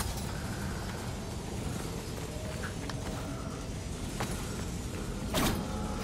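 Heavy spiked wheels roll and rumble.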